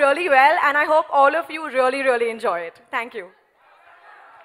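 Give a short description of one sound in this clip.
A young woman sings into a microphone, heard through loudspeakers.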